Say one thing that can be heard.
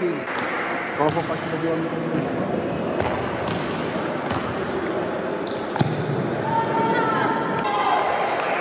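Voices chatter in a large echoing hall.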